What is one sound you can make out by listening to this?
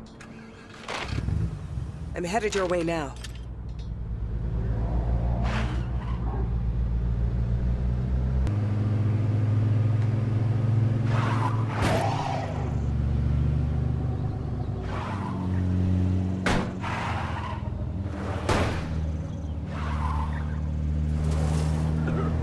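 A car engine starts and hums steadily as the car drives along a road.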